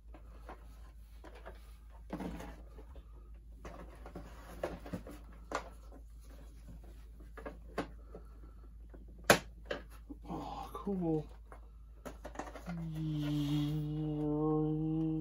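Plastic toy parts click and knock as they are handled.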